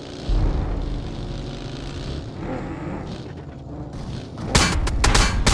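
A buggy engine rumbles and revs.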